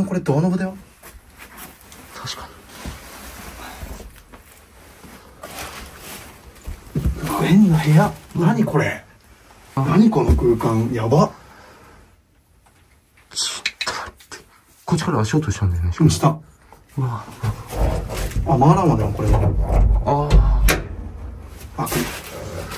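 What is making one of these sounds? A young man speaks quietly and nervously, close by.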